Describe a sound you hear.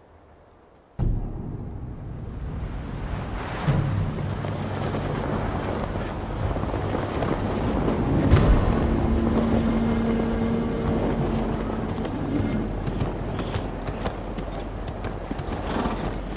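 Cloth banners flap in the wind.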